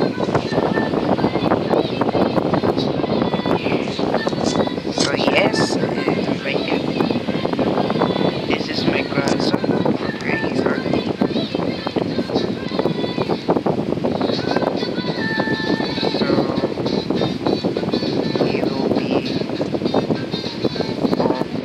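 A young man talks casually and close to a microphone.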